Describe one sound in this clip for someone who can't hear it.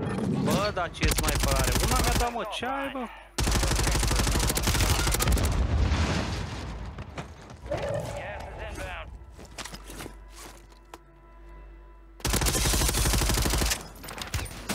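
Rapid gunfire bursts from automatic weapons.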